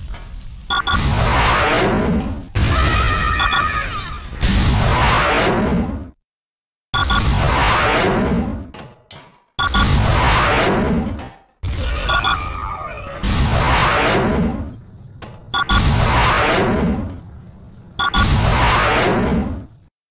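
Energy blasts whoosh and roar in repeated long bursts.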